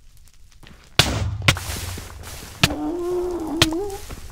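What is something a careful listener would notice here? Lava bubbles and crackles nearby.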